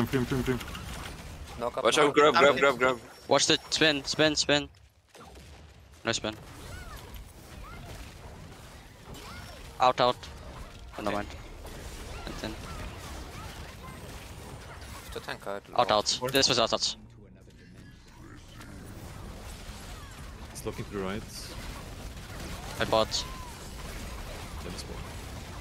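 Magic spells crackle and burst in a fast fantasy battle.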